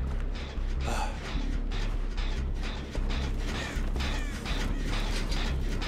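Footsteps run across dry ground.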